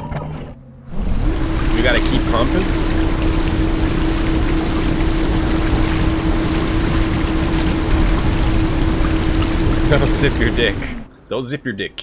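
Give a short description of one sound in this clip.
Water rushes steadily through a large pipe with a low hum.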